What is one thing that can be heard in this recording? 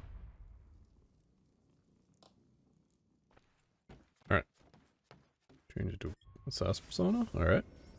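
Footsteps tread on wooden floorboards.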